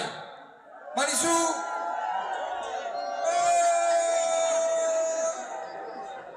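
A man sings into a microphone.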